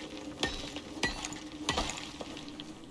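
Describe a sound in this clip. A pickaxe strikes rock with sharp knocks.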